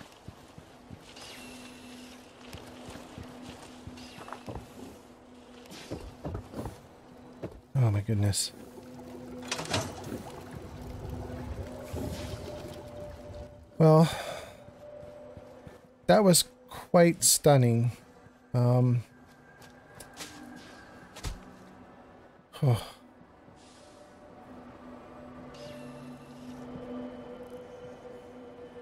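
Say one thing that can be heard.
An elderly man talks calmly and casually into a close microphone.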